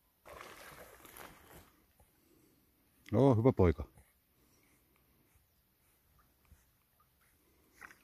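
A dog swims, splashing softly through water.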